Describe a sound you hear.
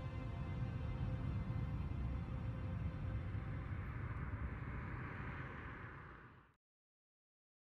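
A jet engine roars in the distance as an aircraft takes off.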